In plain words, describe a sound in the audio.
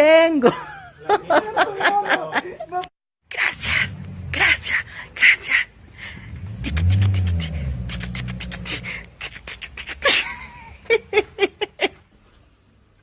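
A young man laughs and talks with animation close up.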